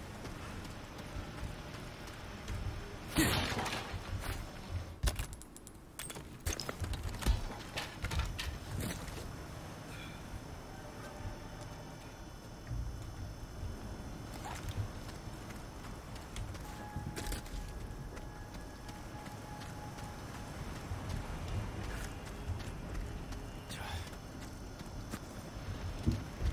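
Footsteps crunch over gravel and rubble.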